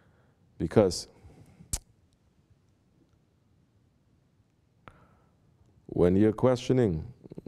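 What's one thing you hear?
A man speaks calmly and close to a microphone, with pauses.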